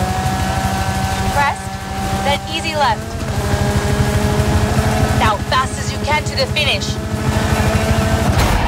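A rally car engine roars steadily at high revs, climbing slowly as the car speeds up.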